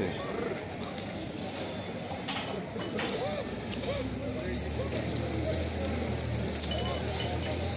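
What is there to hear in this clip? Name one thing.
Sheep hooves shuffle and trample on a hard floor.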